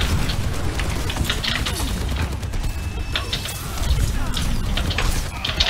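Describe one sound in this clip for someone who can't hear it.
Loud thumping game effects and explosions rumble.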